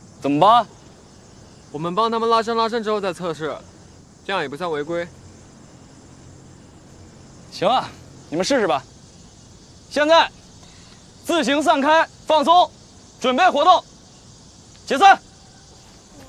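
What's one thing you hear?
A man speaks loudly and firmly outdoors.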